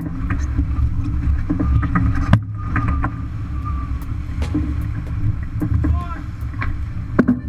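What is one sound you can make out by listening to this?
Waves rush and splash against a sailboat's hull.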